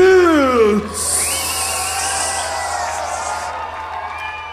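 A concert crowd claps and cheers.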